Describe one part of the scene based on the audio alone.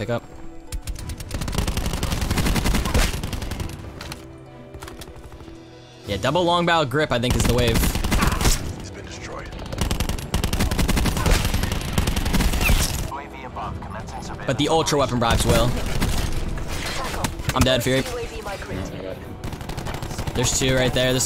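Rapid gunfire bursts out in a video game.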